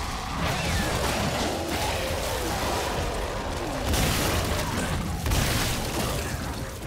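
A gun fires in sharp shots.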